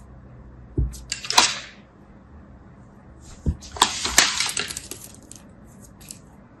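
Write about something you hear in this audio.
Fingers crumble and rustle a pile of clay pieces.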